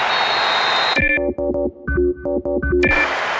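A short electronic melody plays.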